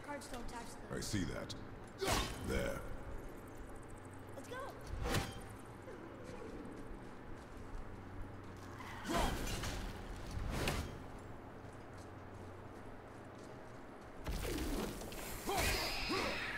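An axe strikes with heavy thuds.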